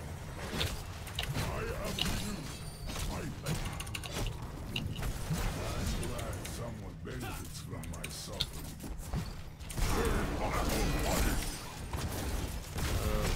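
Characters' weapons clash with sharp hits.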